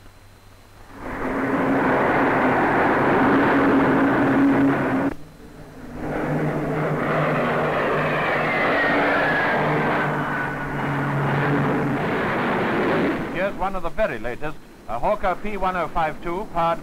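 A jet engine roars loudly as a plane flies past overhead.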